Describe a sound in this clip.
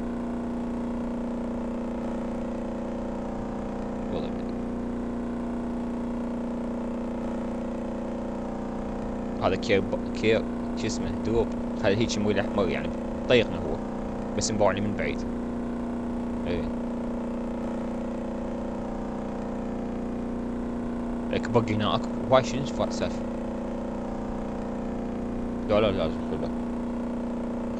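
A boat engine drones steadily at a constant pitch.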